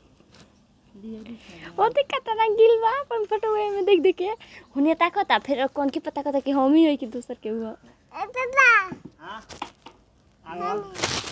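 A small child babbles and chatters in a high voice close by.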